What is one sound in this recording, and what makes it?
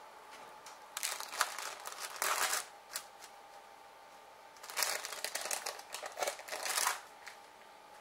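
Paper rustles and crinkles in a woman's hands.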